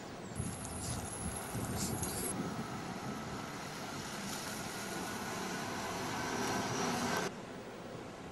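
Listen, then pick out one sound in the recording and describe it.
A bus engine rumbles as the bus drives past.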